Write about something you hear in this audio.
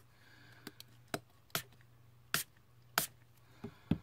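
A spray bottle sprays in short bursts.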